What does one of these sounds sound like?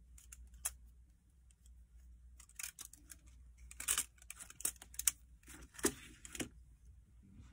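Stiff plastic packaging crinkles and rustles as hands handle it.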